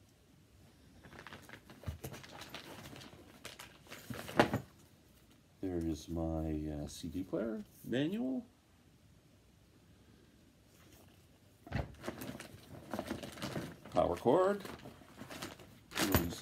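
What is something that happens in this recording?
Paper and plastic wrapping rustle and crinkle.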